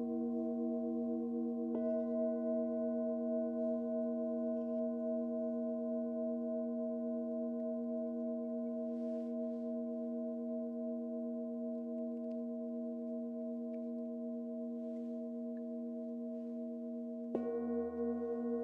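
Crystal singing bowls hum and ring in a steady, layered drone.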